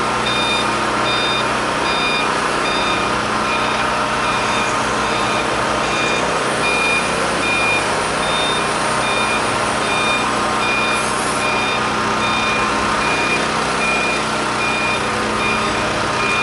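A forklift engine hums steadily.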